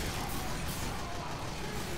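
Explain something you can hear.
Gunfire crackles rapidly.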